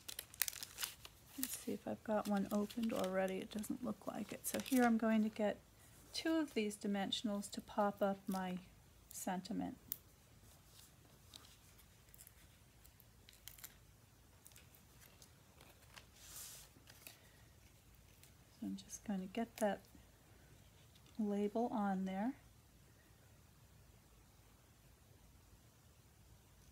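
Paper rustles and crinkles as it is folded and handled.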